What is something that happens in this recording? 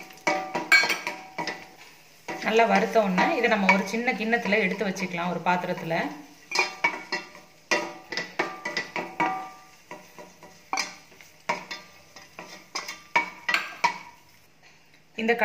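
A wooden spatula knocks and scrapes against a metal pan.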